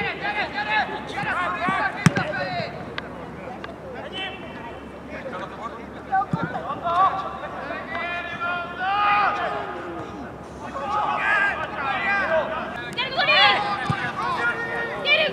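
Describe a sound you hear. Women shout and call out to each other across an open pitch.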